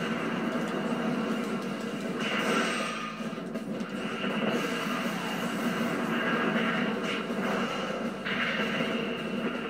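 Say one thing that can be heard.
Video game battle effects whoosh and clash through a small speaker.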